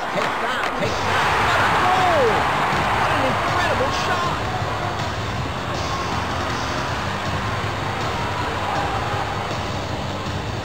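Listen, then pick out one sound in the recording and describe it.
A crowd cheers and roars loudly in a large arena.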